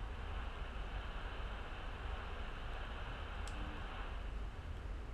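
A television hisses with steady static.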